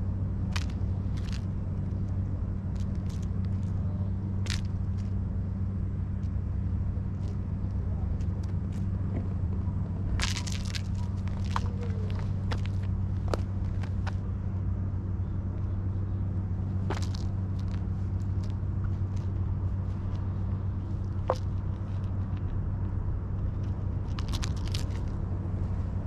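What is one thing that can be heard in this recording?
Kittens scuffle and paw at a feather toy on rough ground, with scattered soft scratches.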